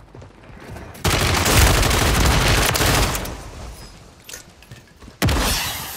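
Rapid gunfire rattles loudly in short bursts.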